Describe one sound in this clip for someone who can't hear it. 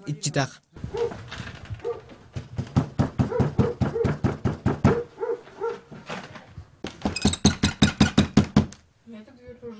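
A man pounds his fist rapidly on a wooden door.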